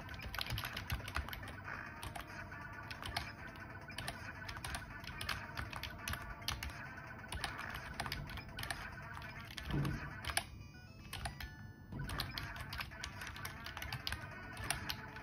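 Retro video game music and shooting effects play through small speakers.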